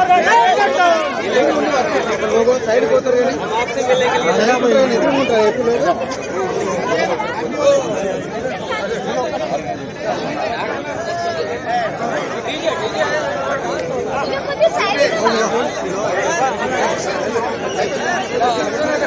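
A large crowd of men cheers and shouts together outdoors.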